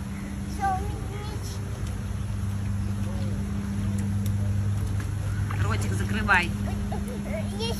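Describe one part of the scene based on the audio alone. A young child squeals and babbles nearby.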